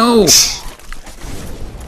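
A sword slashes with a loud whoosh and impact.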